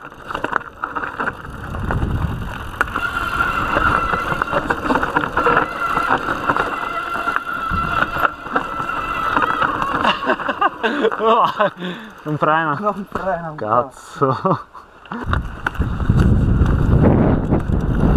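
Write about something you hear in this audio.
A bicycle chain and frame clatter over bumps.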